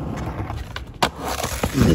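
A skateboard's tail knocks sharply against concrete.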